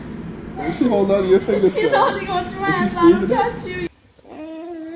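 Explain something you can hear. A woman laughs nearby.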